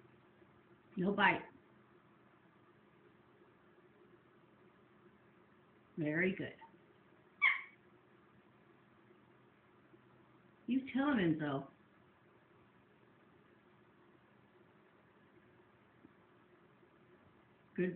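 A cat meows in short, loud calls.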